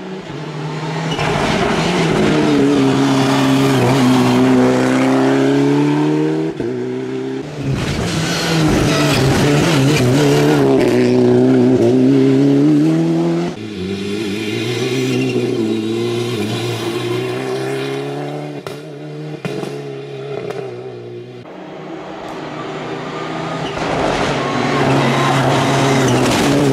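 A rally car engine roars loudly, revving up and down as cars speed past one after another.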